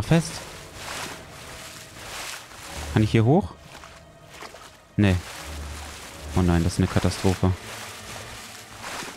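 Water splashes and ripples as a small creature swims.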